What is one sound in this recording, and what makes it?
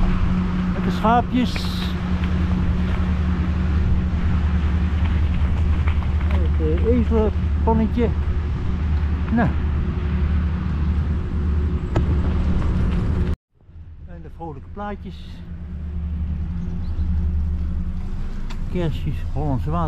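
Bicycle tyres roll and crunch over a gravel path.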